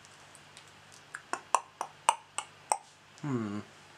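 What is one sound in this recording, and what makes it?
A pen taps and clicks softly against lips.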